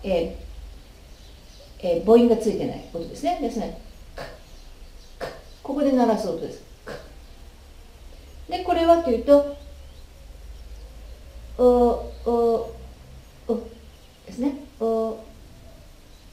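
A woman speaks clearly and slowly, close by, pronouncing words one at a time.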